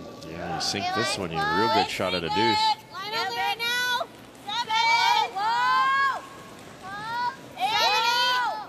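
A young woman shouts loudly over and over.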